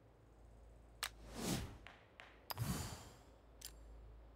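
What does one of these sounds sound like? Short whooshing swishes sound as game menus open and close.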